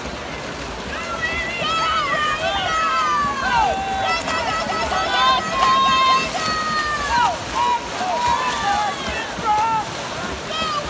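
A crowd cheers and shouts loudly from around the pool.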